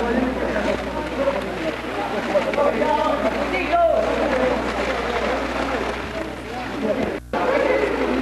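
Water splashes as people move in a pool.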